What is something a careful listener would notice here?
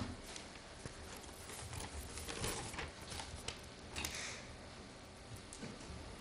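Footsteps walk across a hard floor.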